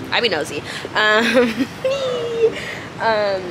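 A young woman laughs close to the microphone.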